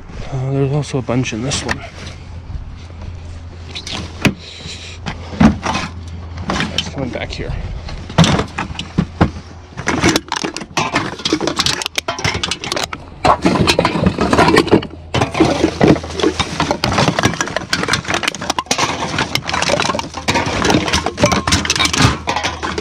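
Cans clink and rattle against one another.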